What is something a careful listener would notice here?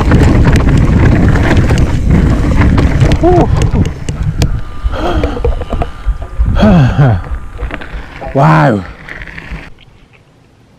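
Bicycle tyres rumble and rattle over a bumpy dirt trail.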